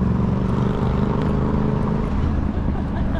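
A bus engine hums close by and moves away.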